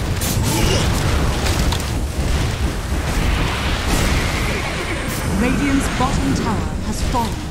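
Game spell effects crackle and blast during a fast battle.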